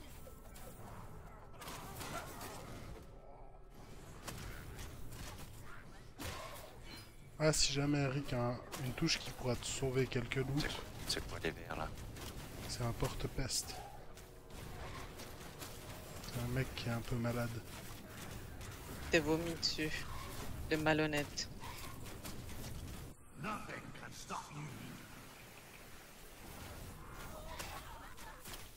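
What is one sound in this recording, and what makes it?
Fiery magic blasts crackle and burst.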